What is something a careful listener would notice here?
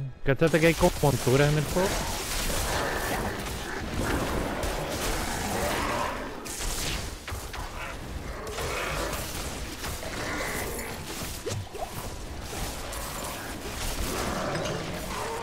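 Blades slash and strike repeatedly in a fight.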